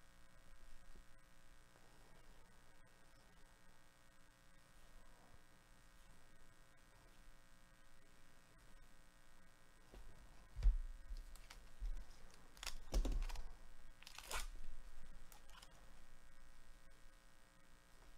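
Trading cards slide and shuffle softly against each other.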